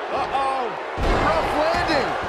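A body slams hard onto a wrestling mat.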